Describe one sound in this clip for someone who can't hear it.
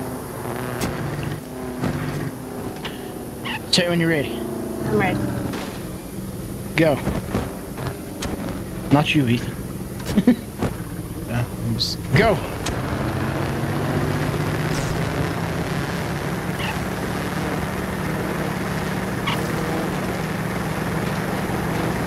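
A car engine drones steadily while revving.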